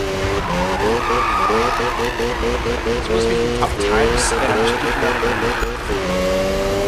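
Tyres screech as a car drifts around a bend.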